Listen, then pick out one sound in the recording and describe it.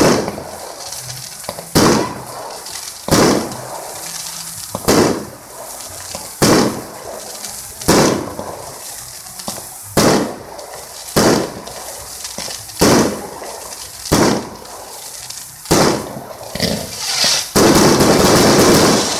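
Firework rockets whistle and crackle as they shoot up.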